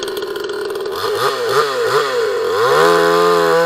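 A two-stroke chainsaw revs in short bursts.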